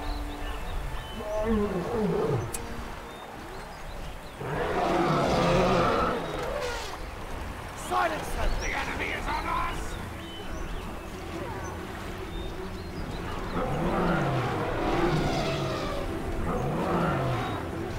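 Huge war beasts bellow and trumpet loudly.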